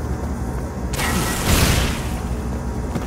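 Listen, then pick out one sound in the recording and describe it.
A blast of noise bursts out as smoke sprays.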